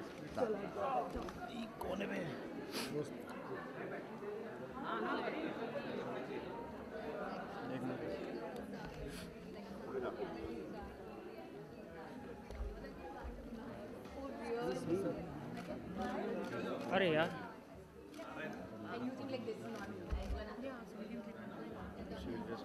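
Several voices chatter in the background of a busy room.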